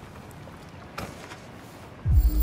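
A record player's lid clunks as it is lifted.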